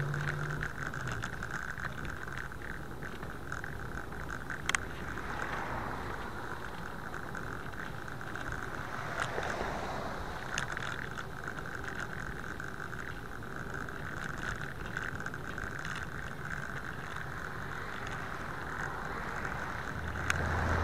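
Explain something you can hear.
Tyres hum on pavement.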